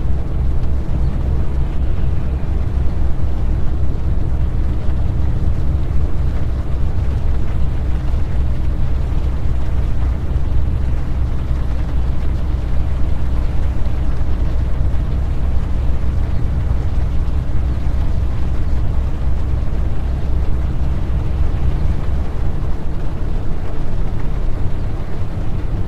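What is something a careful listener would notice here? Rain patters on a windscreen.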